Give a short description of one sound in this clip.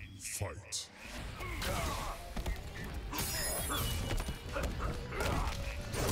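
Punches and kicks thud and crack in a fight.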